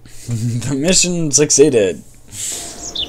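A young man speaks with animation through a close microphone.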